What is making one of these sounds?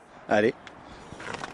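A young man speaks briefly close by.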